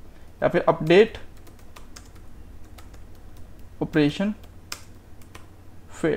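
Keys clack on a keyboard as someone types.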